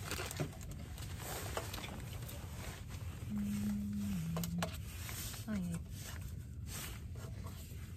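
Paper stickers rustle and tap against a table.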